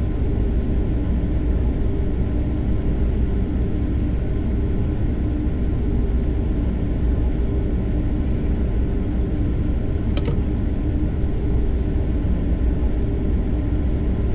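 A train rumbles steadily along the track from inside the cab.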